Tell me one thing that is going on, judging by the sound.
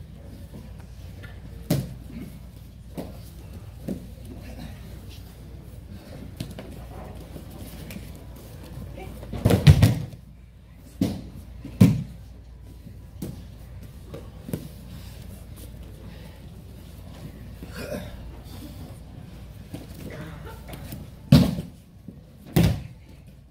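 Bare feet shuffle and slap on a mat.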